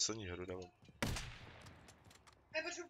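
A single gunshot rings out and echoes.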